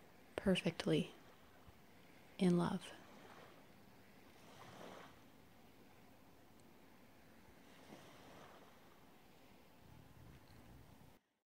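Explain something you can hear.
Small waves lap and wash gently onto a shore.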